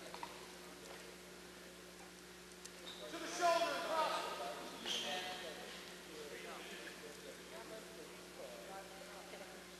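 Wrestlers scuffle and thud against a padded mat.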